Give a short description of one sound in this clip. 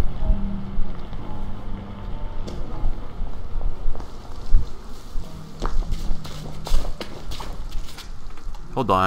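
Footsteps thud and scuff on a hard floor.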